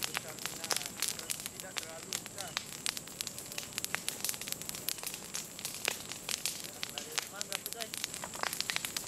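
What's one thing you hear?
A fire crackles and pops loudly.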